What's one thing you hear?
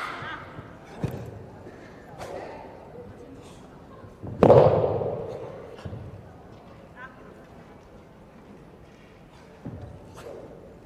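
A staff strikes a padded floor with sharp thuds that echo in a large hall.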